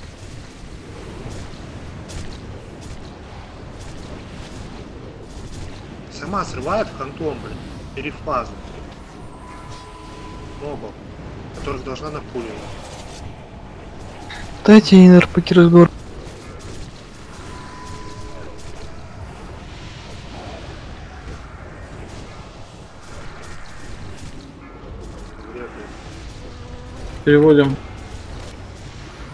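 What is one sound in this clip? Spell effects crackle and whoosh in a battle.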